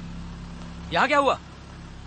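A man speaks briefly and breathlessly.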